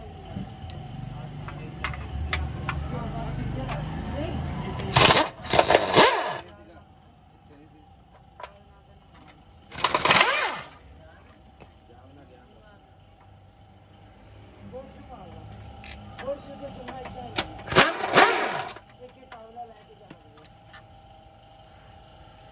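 Metal tools clink against metal parts.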